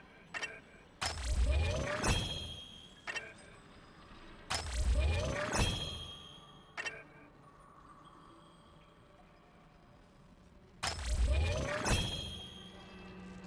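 A deep whoosh swells and ends in a bright chime as an upgrade unlocks.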